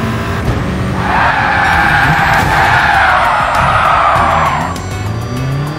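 Tyres screech loudly on tarmac.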